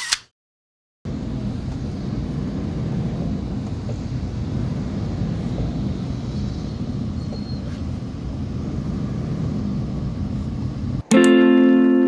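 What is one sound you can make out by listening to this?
Road noise rumbles from inside a moving car.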